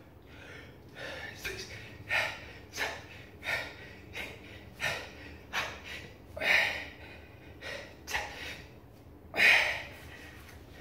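A man exhales sharply with each push-up.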